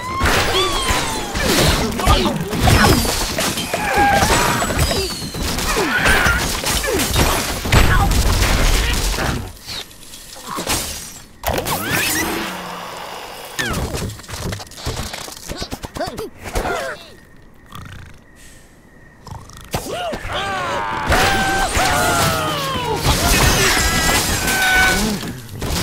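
Cartoon birds squawk and chirp.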